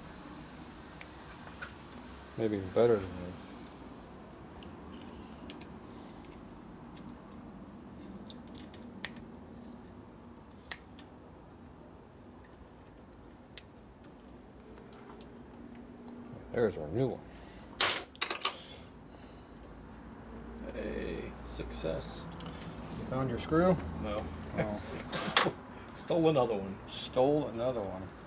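Small metal parts click and tap against each other.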